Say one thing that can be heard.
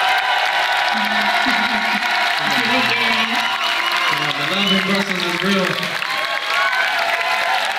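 A young man speaks into a microphone through loudspeakers.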